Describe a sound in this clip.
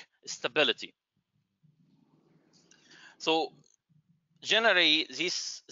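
A man speaks calmly through a microphone, in short bursts with pauses.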